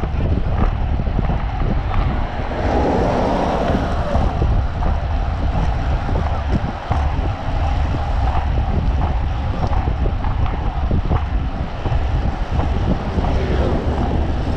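Wind rumbles loudly against a moving microphone outdoors.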